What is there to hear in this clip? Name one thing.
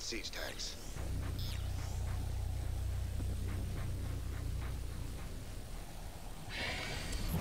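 A laser beam fires with a steady low hum.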